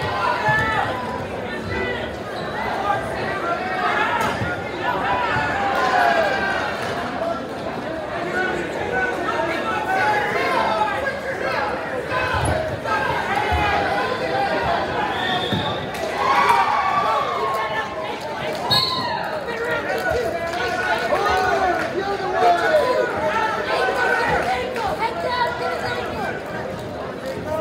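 A man coach yells instructions from the mat's edge.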